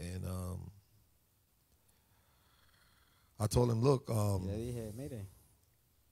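A man preaches through a microphone in a hall with an echo.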